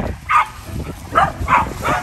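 Several dogs bark and yelp outdoors.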